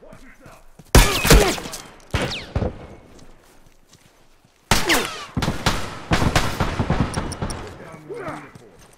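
Gunshots crack loudly nearby.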